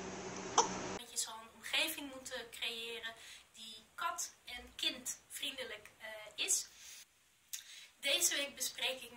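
A young woman speaks calmly close to the microphone.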